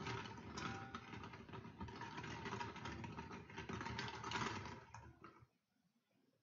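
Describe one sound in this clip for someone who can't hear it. Plastic balls rattle and clatter as a man stirs them in a bowl.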